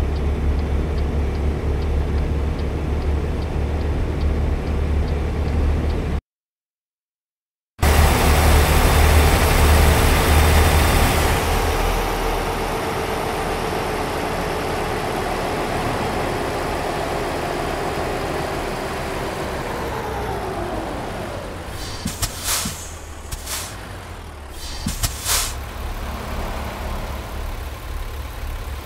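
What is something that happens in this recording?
A diesel semi-truck engine drones as the truck cruises along a highway.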